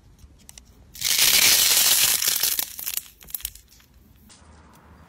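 Soft slime crackles and squelches as hands squeeze it.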